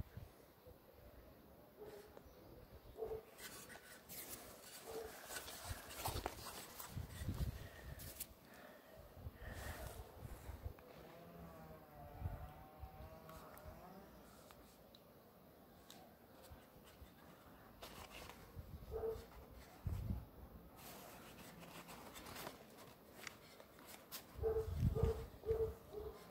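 Rubber inner tube squeaks and rustles as hands handle it.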